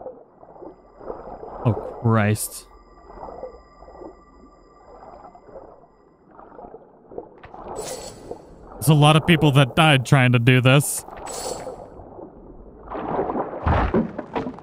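A swimmer strokes through water with muffled swishes.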